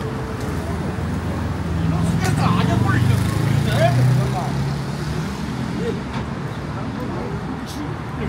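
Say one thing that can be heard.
Elderly men chat nearby in a small group.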